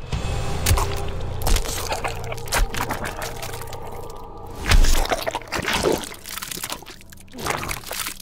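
Flesh tears and squelches wetly.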